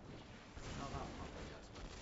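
An electric crackle zaps from a card game.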